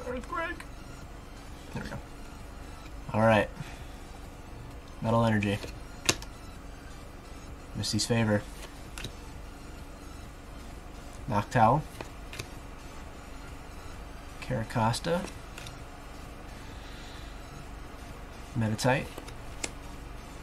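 Trading cards rustle and slide in hands.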